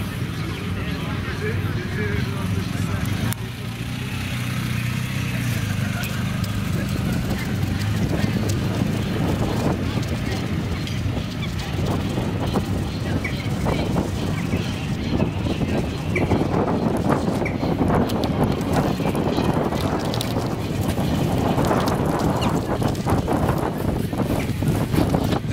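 A motorcycle engine hums as the motorcycle rides past and away.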